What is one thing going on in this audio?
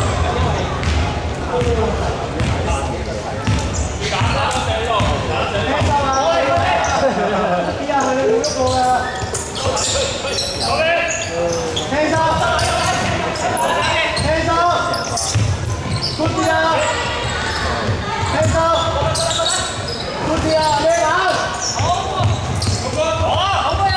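Young men shout and call out across the echoing hall.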